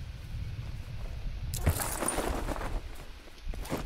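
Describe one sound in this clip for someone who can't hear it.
Wind rushes past during a parachute descent.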